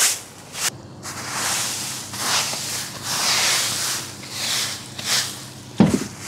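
A rake scrapes through dry leaves and twigs.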